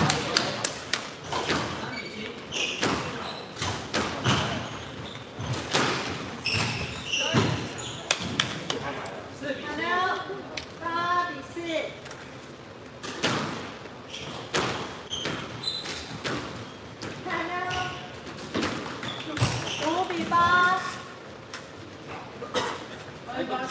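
A squash ball smacks sharply off rackets and walls in an echoing hall.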